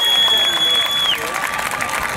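A marching band holds a final loud note outdoors.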